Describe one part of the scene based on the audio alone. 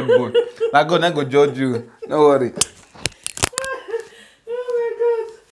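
A woman laughs loudly close by.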